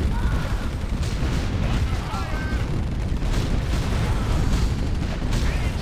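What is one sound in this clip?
Explosions boom with a low rumble.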